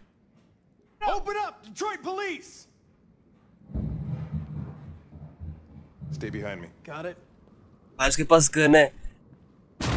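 A middle-aged man speaks in a low, calm voice.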